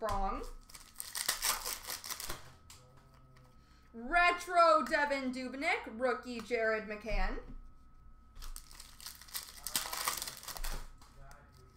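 Plastic card wrappers crinkle and rustle.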